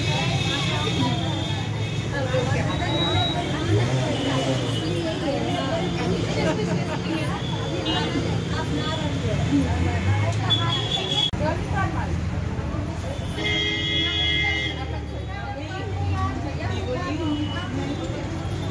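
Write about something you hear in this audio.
A group of women talk and chatter close by.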